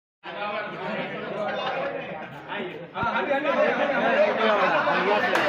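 A crowd of men chatters and cheers close by.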